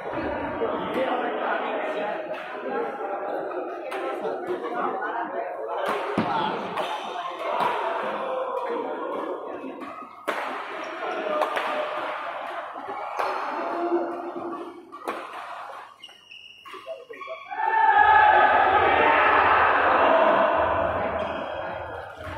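Men talk and call out nearby in a large echoing hall.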